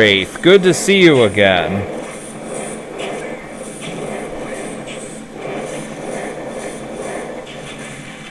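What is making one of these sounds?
Fireballs whoosh and burst in rapid succession.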